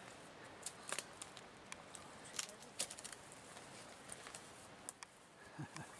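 Dry twigs and leaves crackle and rustle as someone moves through undergrowth.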